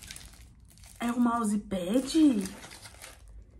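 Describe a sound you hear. A young woman lets out a long, loud wail.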